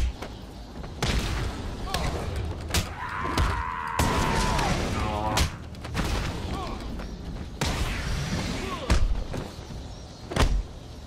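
Heavy punches and kicks land with dull thuds.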